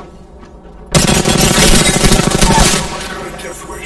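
Rapid gunfire rattles loudly in a burst.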